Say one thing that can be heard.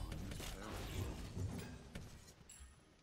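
A magic blast crackles and booms.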